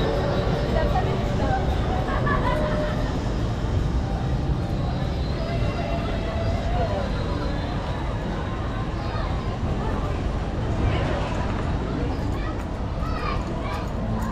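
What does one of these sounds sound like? Footsteps walk along a hard path.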